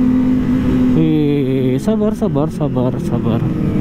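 A motorcycle engine revs up and down as gears change.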